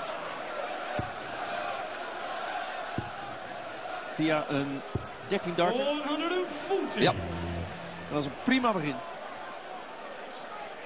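A large crowd murmurs and cheers in a big echoing hall.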